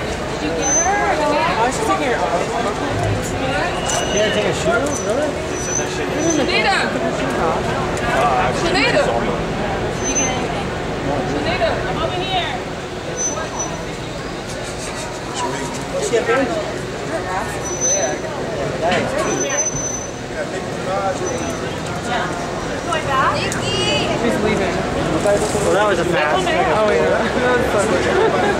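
A crowd of adult men and women talk over one another nearby indoors.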